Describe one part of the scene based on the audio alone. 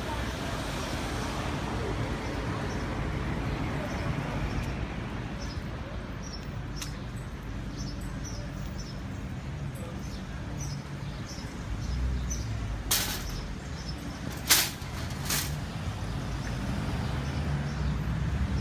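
Footsteps tap along a brick pavement.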